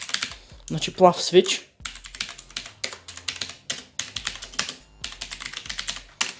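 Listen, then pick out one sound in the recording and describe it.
Fingers type quickly on a mechanical keyboard with clicky blue switches.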